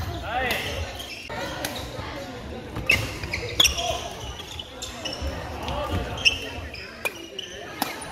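Shoes squeak sharply on a hall floor.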